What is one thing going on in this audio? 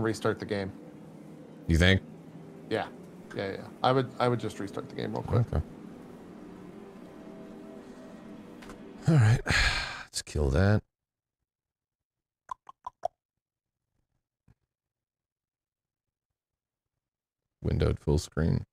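A man speaks calmly and closely into a microphone, with short pauses.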